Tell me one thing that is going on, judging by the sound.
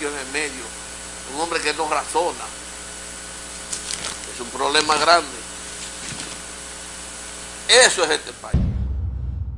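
An elderly man talks calmly into a microphone.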